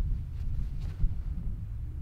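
A man throws a disc with a quick swish.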